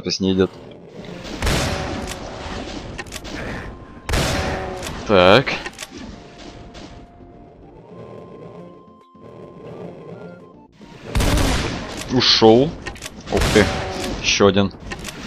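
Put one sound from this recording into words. A shotgun fires loud blasts.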